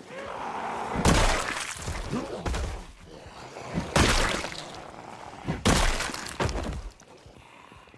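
A bat strikes a body with heavy thuds.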